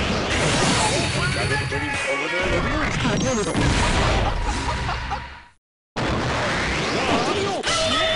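Heavy blows land with loud thuds and crashes.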